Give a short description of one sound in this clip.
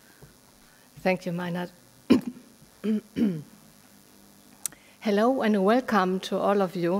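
A woman speaks calmly into a microphone, heard over a loudspeaker in a large room.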